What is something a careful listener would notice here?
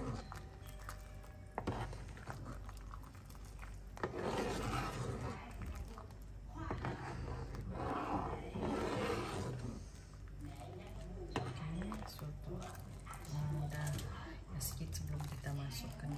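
A ladle scrapes and clinks against a pot.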